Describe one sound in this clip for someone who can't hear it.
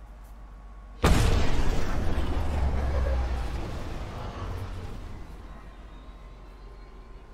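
A spaceship engine roars past with a deep rumble that slowly fades.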